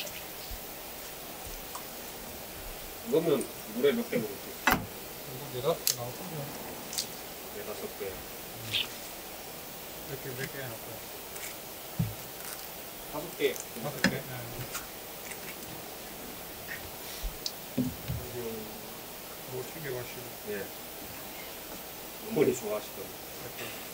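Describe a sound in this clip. A knife scrapes and taps on a cutting board.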